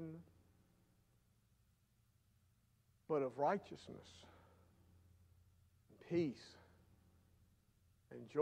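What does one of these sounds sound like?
An older man speaks slowly and calmly into a microphone, with long pauses.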